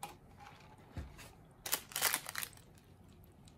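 Ice rattles in a plastic cup.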